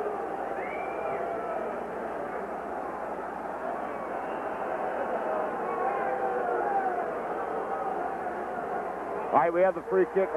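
A large stadium crowd murmurs and cheers in the distance.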